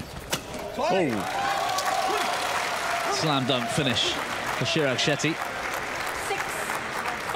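A large crowd cheers and applauds loudly in an echoing hall.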